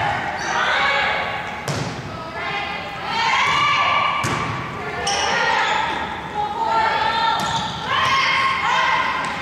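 Young women shout and cheer loudly in a large echoing gym.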